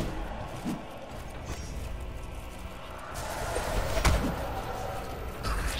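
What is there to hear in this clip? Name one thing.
Magic blasts crackle and boom in quick bursts.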